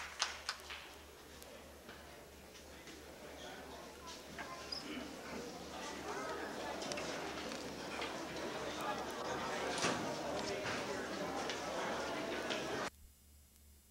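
A handbell choir rings bells in an echoing hall.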